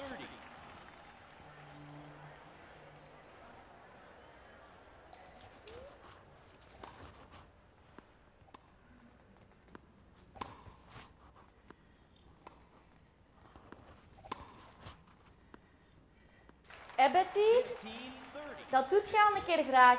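A tennis match plays through a television's small speaker, with ball hits and crowd noise.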